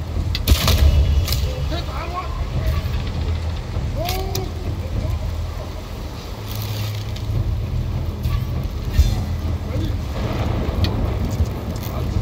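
A bowstring snaps as arrows are loosed.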